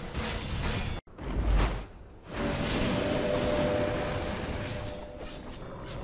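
Magical blasts whoosh and crackle in a fast, busy fight.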